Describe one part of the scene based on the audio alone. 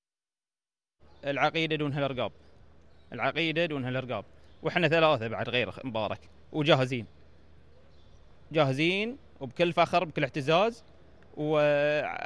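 A man speaks calmly and earnestly into a close microphone.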